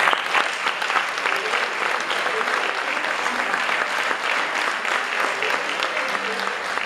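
A folk band plays lively music on accordion.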